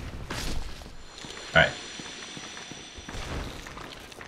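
A glowing spell rings out with a bright, shimmering chime.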